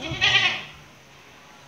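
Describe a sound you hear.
A goat bleats loudly close by.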